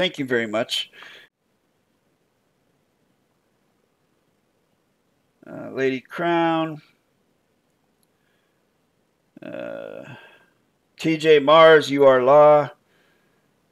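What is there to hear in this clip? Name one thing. A man speaks calmly into a microphone in short bursts with long pauses.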